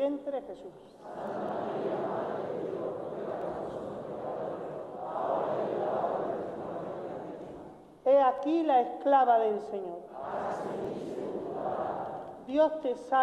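A man chants a prayer in an echoing church.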